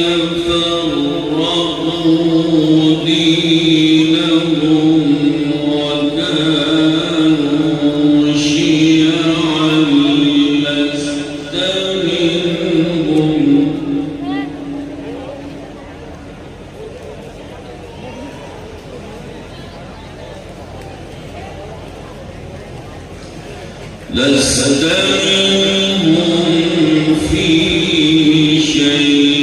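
An elderly man chants in long, drawn-out melodic phrases through a microphone and loudspeakers.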